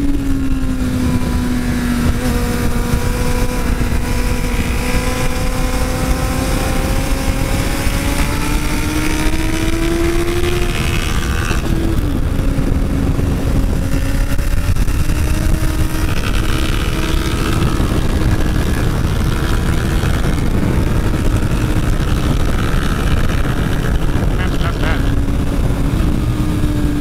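A motorcycle engine roars close by, its pitch rising and falling with the gears.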